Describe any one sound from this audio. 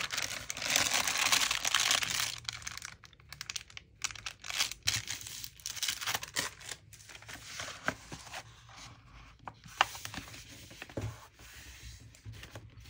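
Sheets of paper rustle and slide as hands handle them.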